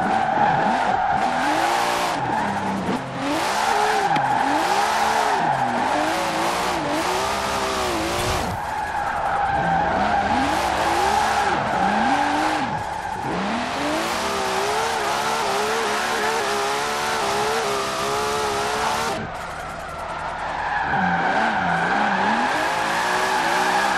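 A turbocharged straight-six sports car engine revs hard and shifts up and down through the gears.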